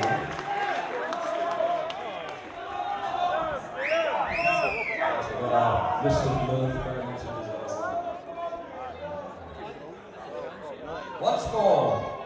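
A band plays loud rock music on stage.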